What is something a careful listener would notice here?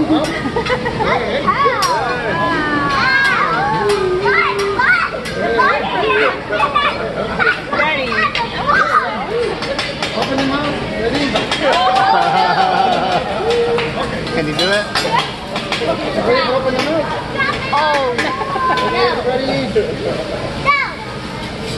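Metal utensils clatter and tap on a hot grill.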